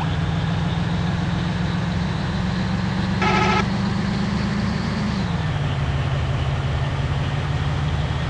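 A bus engine drones steadily, its pitch dropping once partway through.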